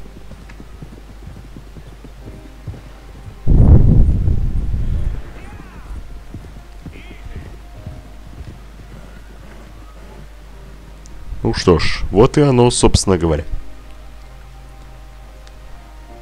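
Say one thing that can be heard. Horses' hooves thud as they gallop.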